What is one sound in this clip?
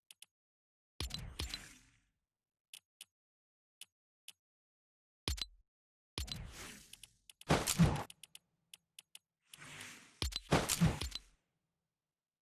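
Soft whooshes swell and fade.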